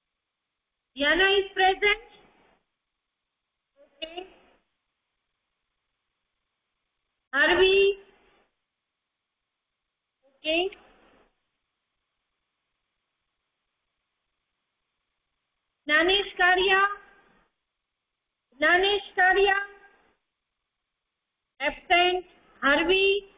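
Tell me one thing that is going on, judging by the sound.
A woman speaks close to a microphone in short phrases with pauses between them.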